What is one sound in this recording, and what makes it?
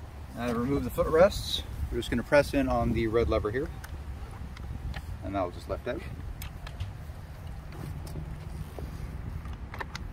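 Plastic parts click as a footrest is unlatched and lifted off.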